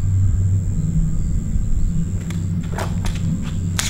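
A man walks with footsteps on a hard floor.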